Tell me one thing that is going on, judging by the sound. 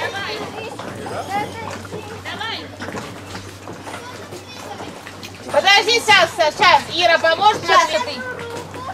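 A young woman talks encouragingly nearby, outdoors.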